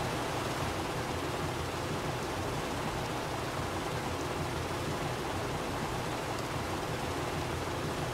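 Water gushes steadily from fire hoses.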